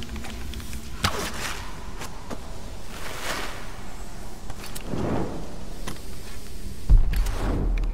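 An arrow whooshes through the air.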